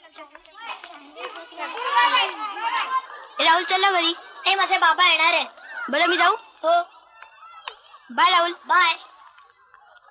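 A young boy sings a lively tune.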